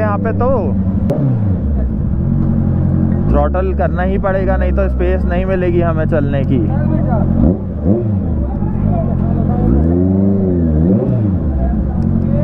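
A motorcycle engine revs up and down a few times.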